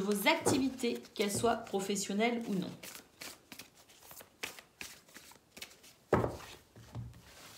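Playing cards riffle and flick as they are shuffled.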